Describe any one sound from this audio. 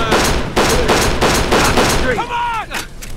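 A pistol fires in rapid shots.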